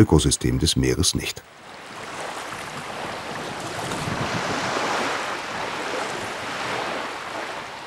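Water splashes softly around wading feet.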